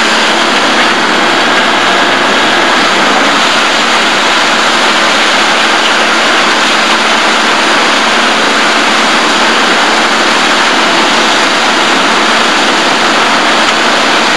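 A heavy diesel engine roars steadily nearby.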